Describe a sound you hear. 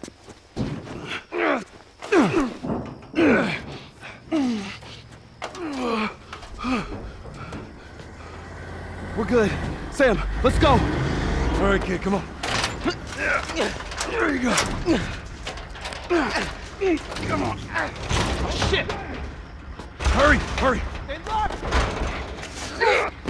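A girl speaks with urgency.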